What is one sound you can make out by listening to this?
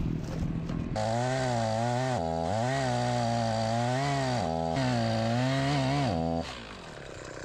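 A chainsaw engine revs up and down loudly, close by.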